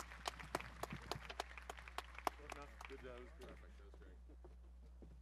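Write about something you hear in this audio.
A crowd applauds outdoors, then the clapping dies away.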